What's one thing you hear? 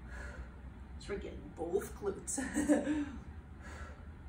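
A woman speaks briefly nearby.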